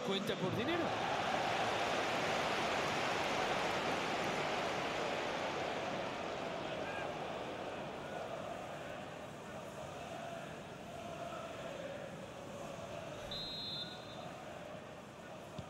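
A large stadium crowd roars and chants steadily, slowly quietening.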